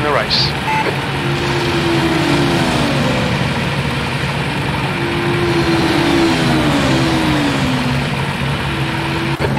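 A racing car engine idles steadily.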